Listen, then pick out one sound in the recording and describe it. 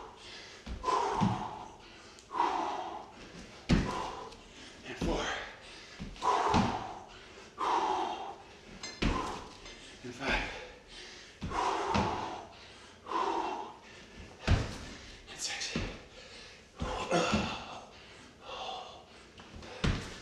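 A man breathes hard and grunts with effort.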